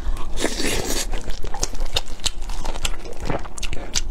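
Food squelches wetly as a young woman chews close to a microphone.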